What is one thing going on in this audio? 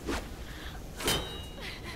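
An axe strikes a man with a heavy thud.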